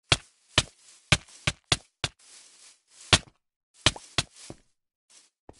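Sharp blows land in quick bursts, as a sword strikes in a game.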